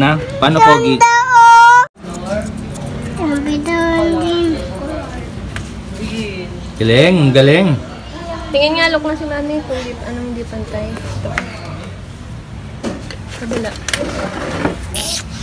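A small child babbles and whines.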